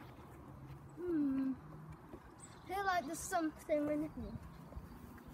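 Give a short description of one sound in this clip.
A young boy talks excitedly close by.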